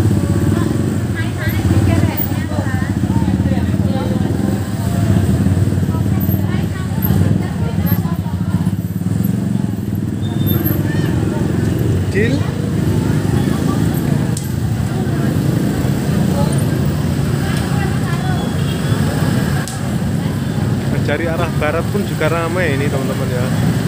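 Motorcycle engines idle and rumble close by.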